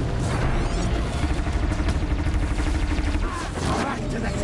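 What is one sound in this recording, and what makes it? Explosions and impacts crash from a fight with a machine.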